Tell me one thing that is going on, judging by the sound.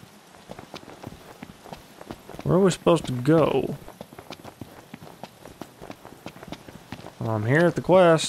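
Footsteps run quickly over gravel.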